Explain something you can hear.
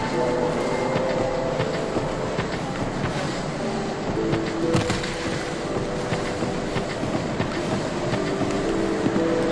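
Soft music with sustained tones plays throughout.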